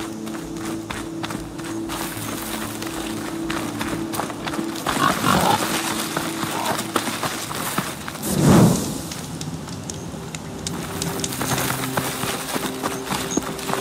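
Footsteps run quickly through rustling grass.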